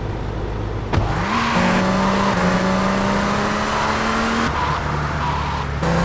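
A car engine revs as the car drives off.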